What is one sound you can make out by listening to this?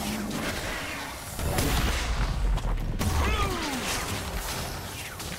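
Video game spell effects whoosh and crackle.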